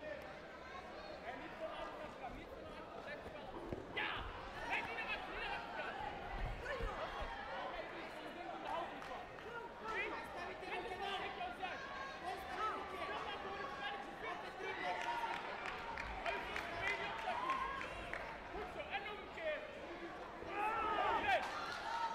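Fighters' kicks thud against body protectors.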